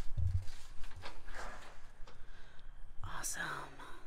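A door unlatches and swings open.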